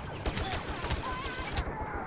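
A blaster pistol fires.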